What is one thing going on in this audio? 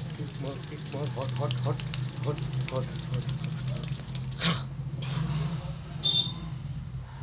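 Hands slap and pat rhythmically on a man's head and back.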